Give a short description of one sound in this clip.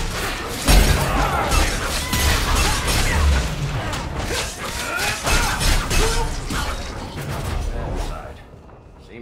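Magic blasts and weapons clash loudly in a fierce battle.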